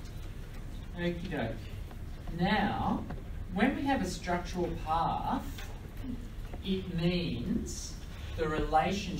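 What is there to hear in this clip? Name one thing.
A young woman speaks calmly through a headset microphone.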